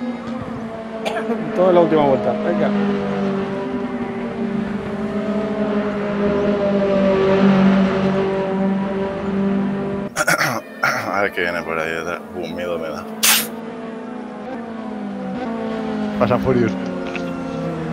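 Other race cars roar past nearby.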